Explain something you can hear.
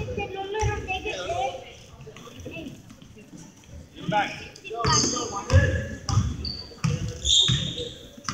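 Spectators nearby talk and call out loudly.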